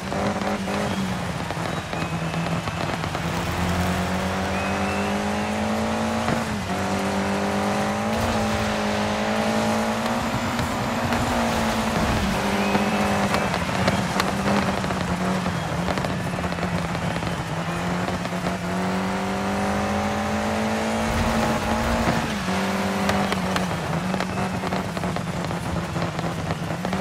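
A rally car engine revs hard and shifts through gears.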